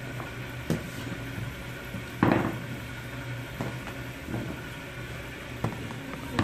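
Hands pat and press soft dough on a metal tray, with soft thuds.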